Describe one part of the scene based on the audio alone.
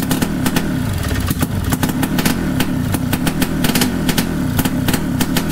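A small two-stroke engine idles with a rapid, uneven putter and sharp ticking.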